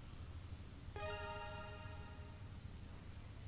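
A short chime rings.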